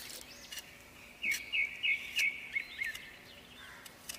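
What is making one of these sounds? A knife scrapes the skin off a ginger root.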